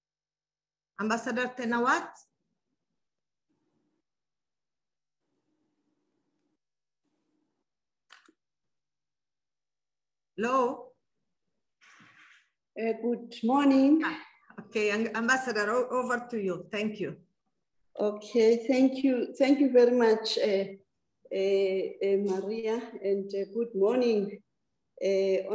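A middle-aged woman speaks calmly over an online call.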